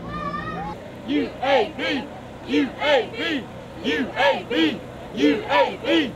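A group of young women cheer and shout loudly together.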